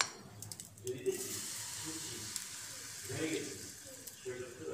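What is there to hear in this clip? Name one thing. A thick batter pours into a hot pan and sizzles.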